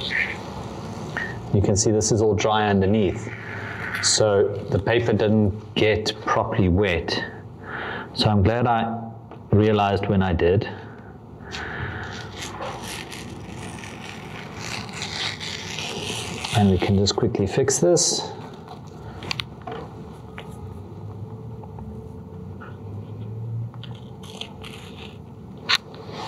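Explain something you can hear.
Paper rustles and crinkles as it is peeled and smoothed by hand.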